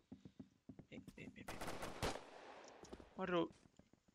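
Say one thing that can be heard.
A gun fires a single shot.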